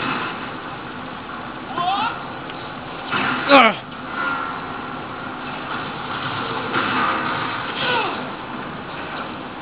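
Sound effects play from a television, with sudden swooping sounds.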